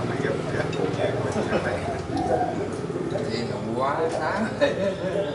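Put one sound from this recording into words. Several men talk and chatter loudly over one another nearby.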